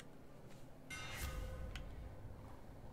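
A short chiming game menu sound rings out.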